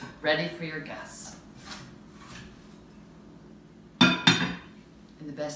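A glass cake dome clinks as it is lifted and set down.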